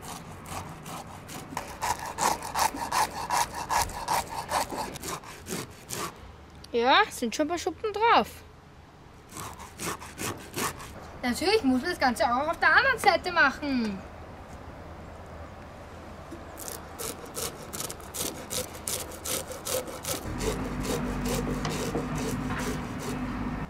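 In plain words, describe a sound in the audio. A fish scaler scrapes rapidly over a fish's scales.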